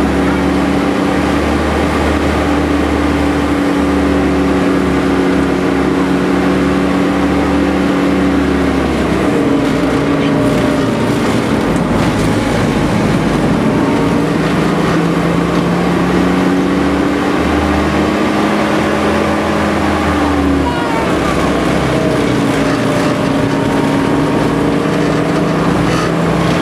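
The cab rattles and vibrates over the road.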